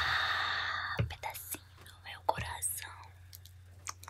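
A young woman whispers softly close to a microphone.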